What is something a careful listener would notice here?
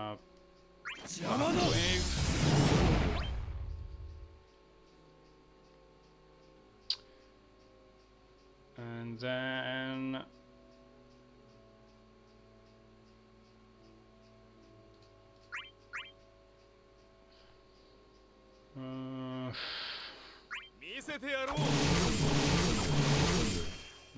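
Battle effects whoosh and crash loudly in bursts.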